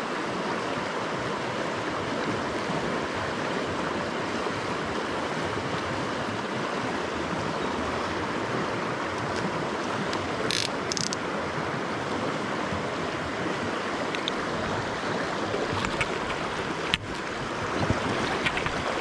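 A river rushes steadily over rocks nearby.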